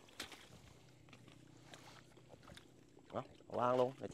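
Feet squelch in wet mud.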